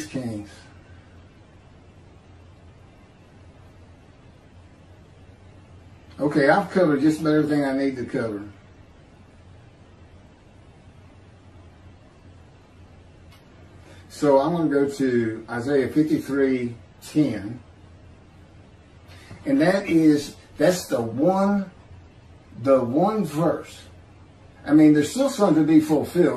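A middle-aged man reads out calmly into a close microphone, with pauses between phrases.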